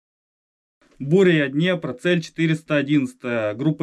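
A man speaks into a radio handset.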